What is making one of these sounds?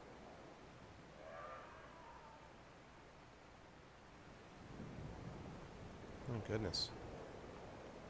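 A man speaks briefly and calmly into a microphone, close by.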